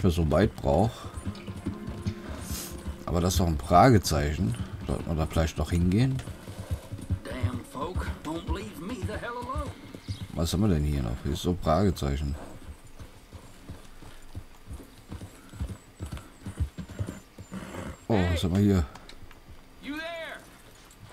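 A horse's hooves clop steadily along a dirt trail.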